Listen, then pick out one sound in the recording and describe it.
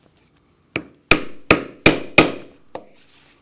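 A mallet taps sharply on a metal punch several times.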